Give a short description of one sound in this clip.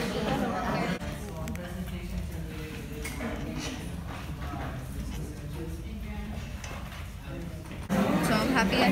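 A woman speaks at a distance.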